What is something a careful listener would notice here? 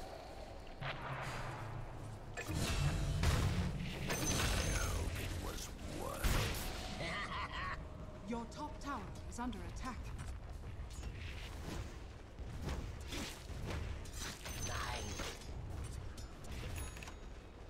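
Game sound effects of clashing blows and spells crackle and boom.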